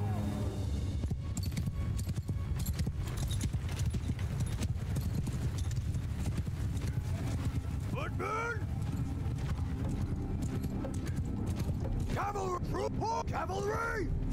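A horse's hooves thud on grass.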